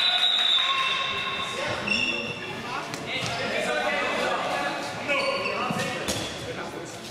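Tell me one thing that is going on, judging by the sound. Men call out to each other in a large echoing hall.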